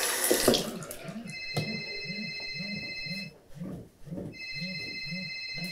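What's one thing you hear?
A cloth rubs and squeaks against a mirror in quick strokes.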